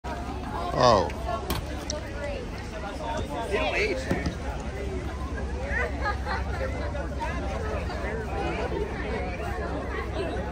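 A crowd of young people chatters outdoors.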